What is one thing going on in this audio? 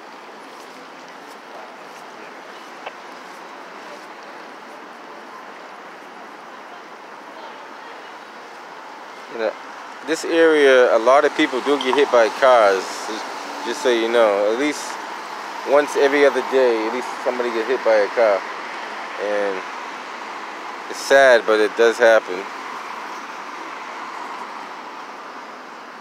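Steady city traffic hums in the distance outdoors.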